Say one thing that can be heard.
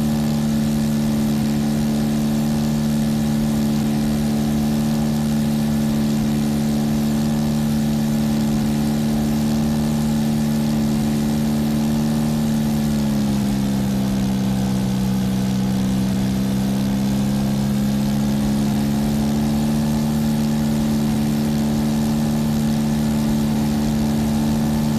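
A small propeller plane's engine drones steadily, dipping briefly in pitch midway before settling again.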